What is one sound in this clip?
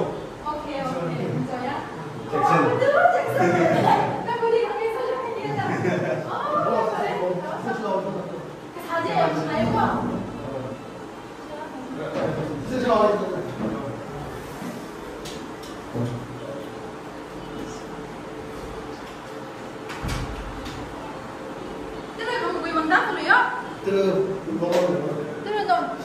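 Several young men talk and laugh together indoors.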